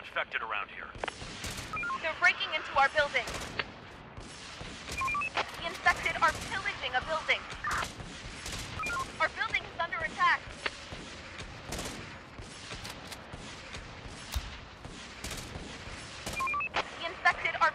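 Gunfire crackles in rapid, uneven bursts.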